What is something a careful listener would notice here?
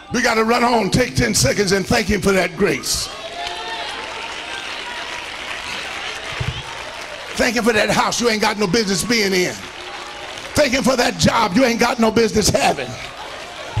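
An elderly man preaches loudly and with passion into a microphone, in bursts.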